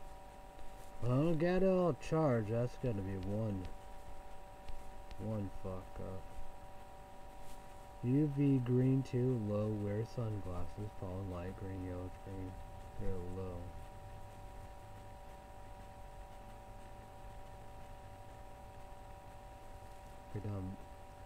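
A young man talks calmly and close by, in short phrases with pauses.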